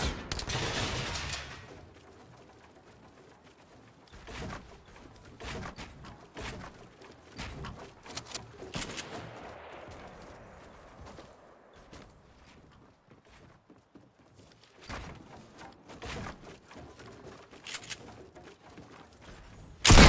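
Wooden walls and ramps clatter as they are built in quick bursts.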